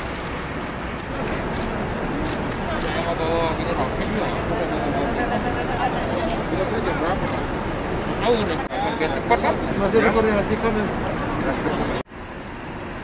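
Several men talk with each other outdoors.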